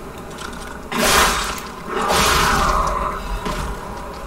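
A heavy blade swings and strikes with a loud whoosh.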